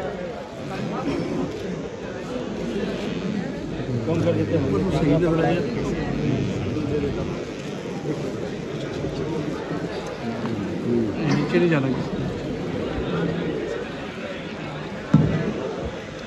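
Several men talk at once in a crowded, echoing hall.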